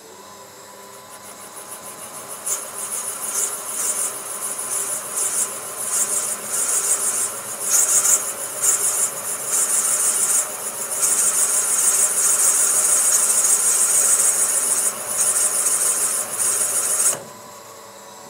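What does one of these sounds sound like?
A milling cutter grinds and whines steadily into metal.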